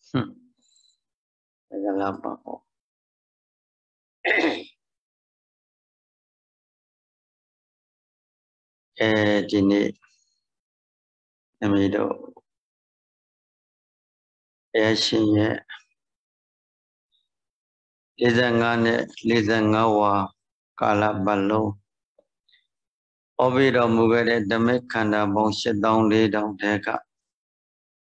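An elderly man speaks calmly into a microphone, in short phrases with long pauses, over an online call.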